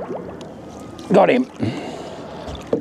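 Water splashes as a fish is scooped up with a net.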